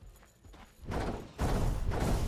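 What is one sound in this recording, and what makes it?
A magic beam hums and zaps.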